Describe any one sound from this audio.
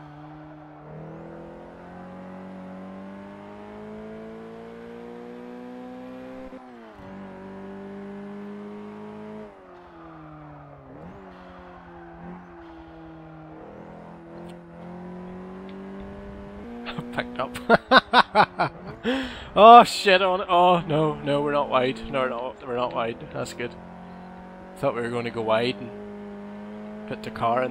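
A car engine drones and rises in pitch, dropping with each gear change.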